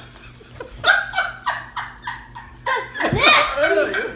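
A boy laughs loudly up close.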